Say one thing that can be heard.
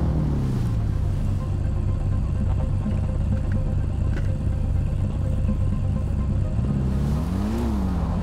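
A dirt bike engine idles steadily.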